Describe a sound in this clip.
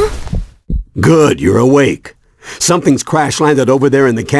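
A middle-aged man speaks loudly and gruffly, close by.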